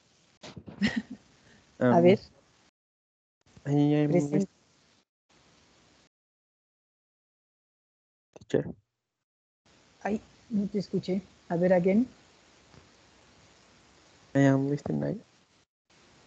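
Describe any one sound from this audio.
A young woman speaks in short bursts over an online call.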